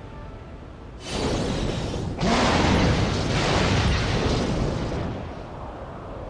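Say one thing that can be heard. A magic blast bursts with a rushing roar.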